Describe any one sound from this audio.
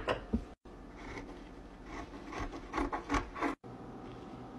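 Scissors snip through thin fabric.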